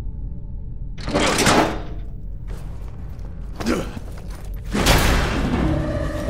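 A heavy metal door scrapes and bangs open.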